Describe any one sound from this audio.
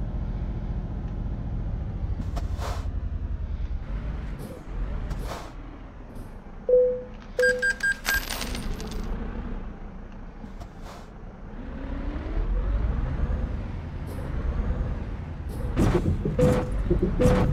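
A truck engine rumbles steadily, rising as it speeds up.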